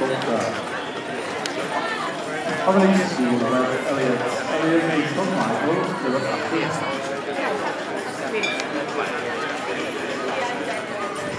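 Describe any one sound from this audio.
A crowd of adult spectators chats nearby outdoors.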